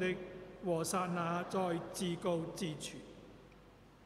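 A man speaks calmly through a microphone in a reverberant hall.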